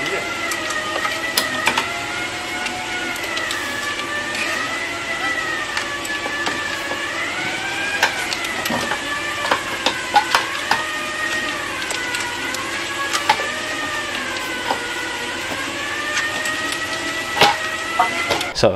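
Metal tools click and clank against motorcycle parts.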